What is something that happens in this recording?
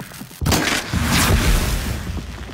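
An explosion bursts with a loud crackling blast.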